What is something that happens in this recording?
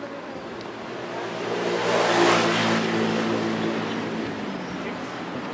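A motorbike engine passes by on the street.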